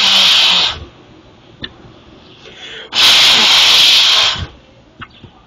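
A man blows hard in a close, loud rush of breath.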